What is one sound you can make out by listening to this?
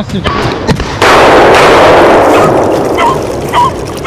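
A shotgun fires with a loud blast that echoes away outdoors.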